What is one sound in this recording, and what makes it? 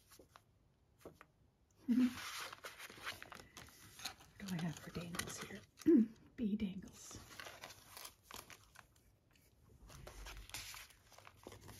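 Paper pages rustle and crinkle as they are handled and turned.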